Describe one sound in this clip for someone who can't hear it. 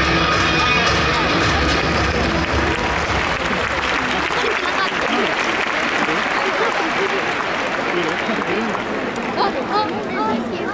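A large crowd chatters and cheers in a big open stadium.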